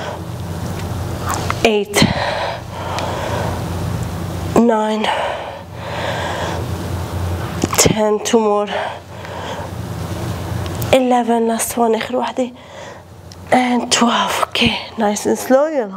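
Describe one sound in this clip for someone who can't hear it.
A young woman talks calmly and clearly.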